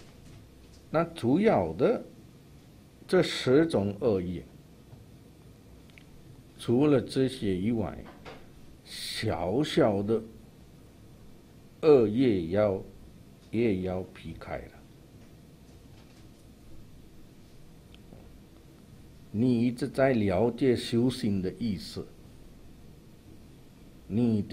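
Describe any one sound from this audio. An elderly man speaks calmly and slowly into a microphone, in short phrases with pauses.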